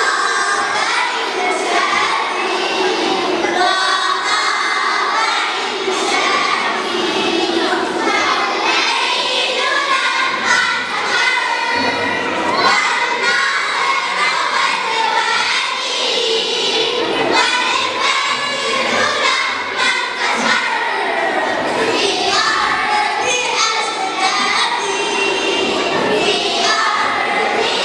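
A choir of young girls sings together through microphones in an echoing hall.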